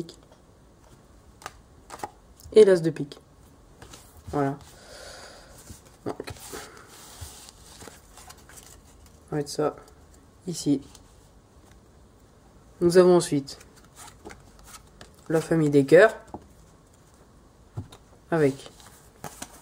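Playing cards flick and slap softly onto a table.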